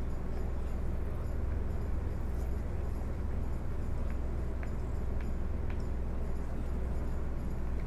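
Dice clatter and roll on a wooden table.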